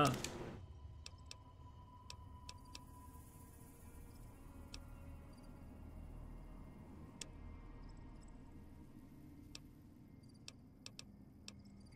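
Game menu clicks tick softly as items are scrolled through.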